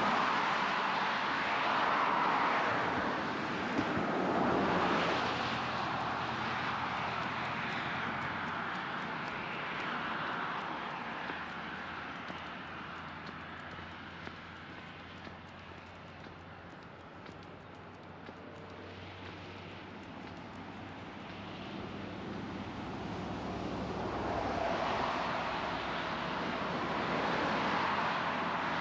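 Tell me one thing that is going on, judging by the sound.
Cars rush past on a nearby road, the swish rising and fading as each goes by.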